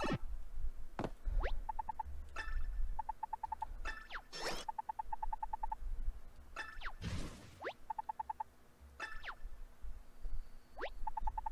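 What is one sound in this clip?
Quick electronic chirps sweep up in pitch.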